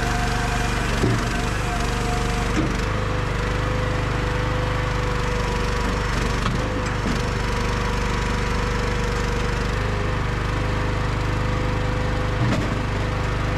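Wood thuds and knocks in the machine.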